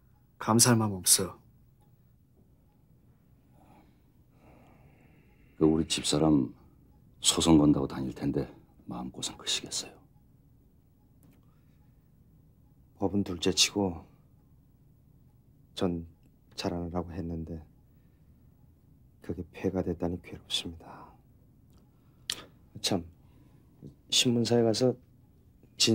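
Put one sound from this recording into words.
A middle-aged man speaks in a low, serious voice nearby.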